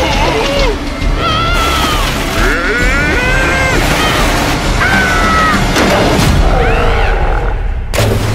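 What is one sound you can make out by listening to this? A cartoon creature screams in a high, squealing voice.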